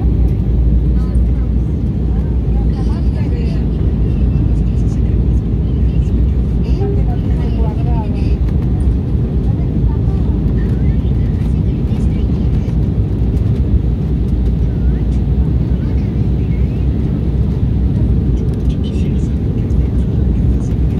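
Jet engines roar with a steady, deep rumble inside an airliner cabin.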